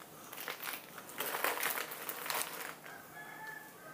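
Plastic packets rustle as they are handled.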